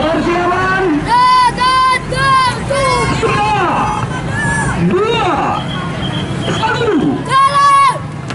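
A man calls out loudly to a group.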